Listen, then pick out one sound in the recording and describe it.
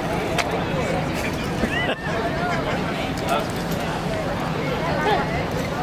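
Several people talk and chatter close by outdoors.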